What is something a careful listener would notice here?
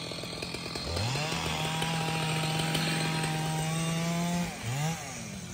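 A chainsaw engine revs up and then idles down.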